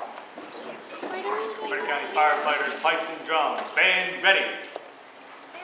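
Bagpipes start up and play loudly in a large room.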